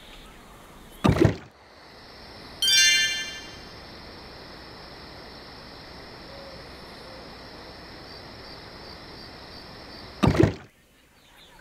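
A short whoosh sounds as a game switches scenes.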